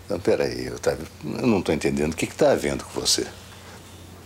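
A middle-aged man speaks slowly and emotionally, close by.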